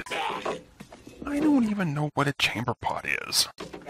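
A young man speaks with irritation.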